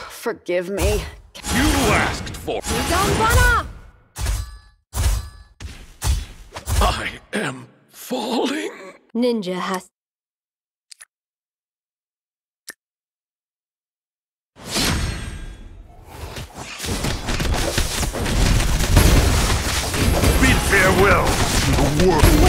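Swords clash and magic blasts burst in a fast fight.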